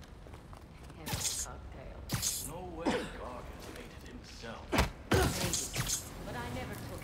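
Sharp whooshes and thuds come in quick bursts.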